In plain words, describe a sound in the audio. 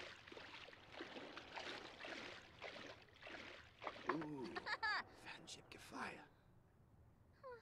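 Water splashes as a swimmer moves through a small pool.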